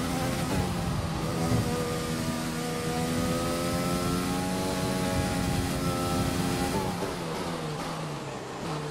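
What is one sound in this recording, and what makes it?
A racing car engine roars at high revs and drops in pitch as it slows.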